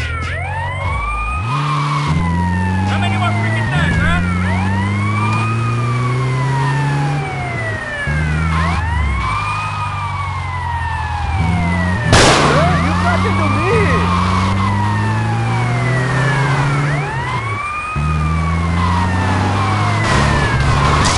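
An armoured police van's engine drones as it drives.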